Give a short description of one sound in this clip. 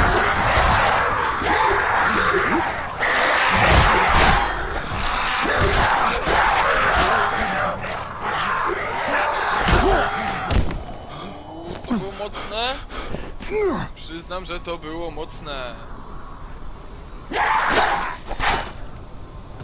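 Heavy blows strike bodies with loud thuds.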